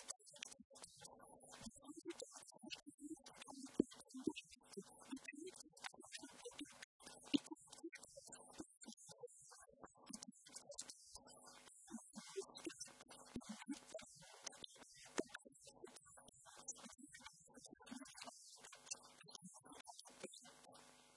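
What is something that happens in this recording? A woman speaks with animation through a handheld microphone, amplified in a large hall.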